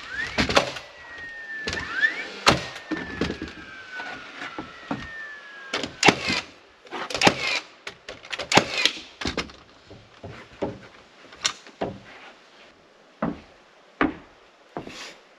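Hammers knock sharply on wooden boards.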